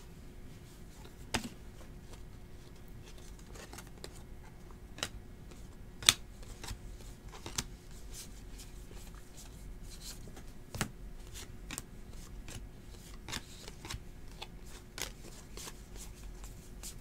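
Trading cards click softly as they are flipped through by hand.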